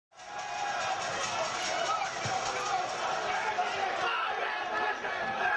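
A crowd cheers and shouts loudly close by.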